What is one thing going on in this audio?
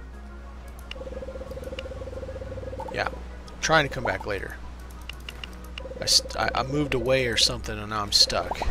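A soft electronic tone hums as game dialogue text types out.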